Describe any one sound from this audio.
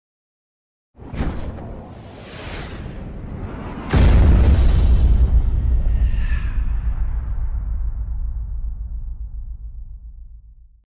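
Fire whooshes past and bursts with a deep boom.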